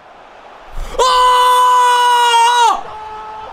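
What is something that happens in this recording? A young man shouts loudly in excitement.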